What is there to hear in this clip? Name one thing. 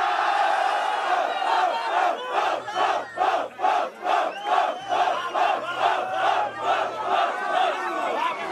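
A crowd outdoors cheers and shouts in rhythm.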